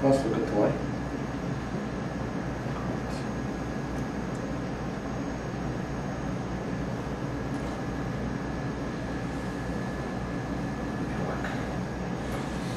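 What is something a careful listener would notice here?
An electric machine hums steadily close by.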